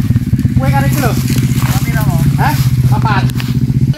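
Footsteps rustle through undergrowth.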